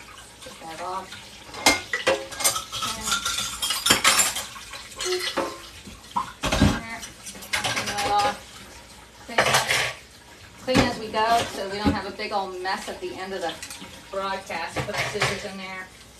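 An elderly woman talks calmly, close by.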